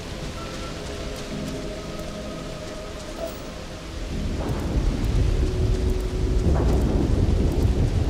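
Wind blows steadily outdoors and grows stronger.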